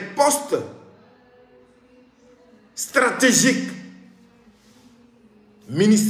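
A young man speaks close to a microphone, calmly and in short bursts with pauses.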